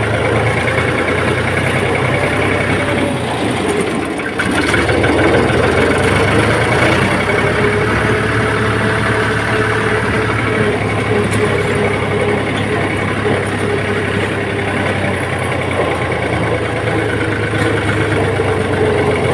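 A tractor's wheels rumble over a bumpy dirt track.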